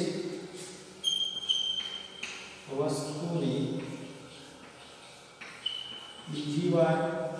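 Chalk taps and squeaks on a board.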